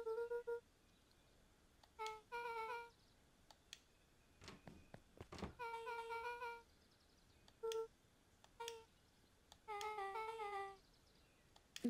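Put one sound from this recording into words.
Short, high, chirpy blips play in quick bursts.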